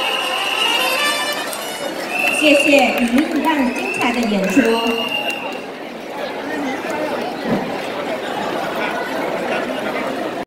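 Pop music plays loudly through loudspeakers in a large hall.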